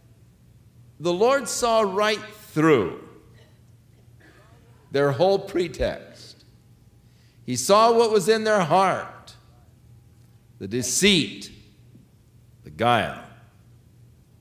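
An elderly man speaks with animation into a microphone, in short bursts with pauses.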